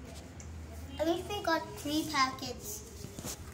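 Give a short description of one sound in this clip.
A young girl speaks close by in a high, lively voice.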